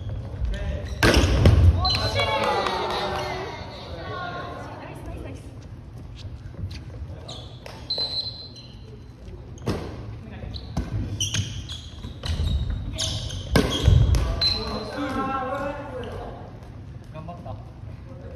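Young men and women shout and cheer with excitement in a large echoing hall.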